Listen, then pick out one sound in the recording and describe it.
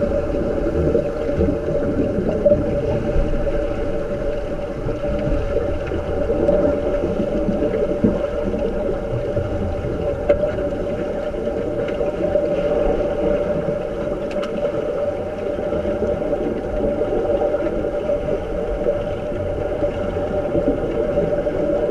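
Water churns and rumbles underwater as people splash in from above.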